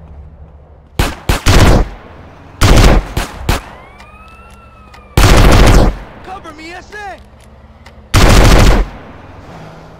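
Loud gunshots blast in short bursts.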